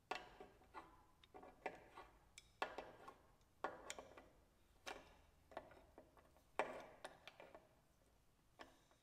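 A ratchet wrench clicks as it turns a fitting.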